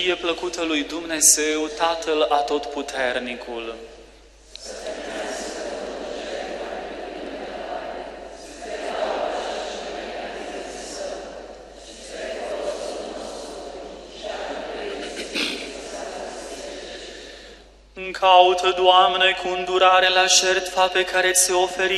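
A man sings slowly through a microphone in a large echoing hall.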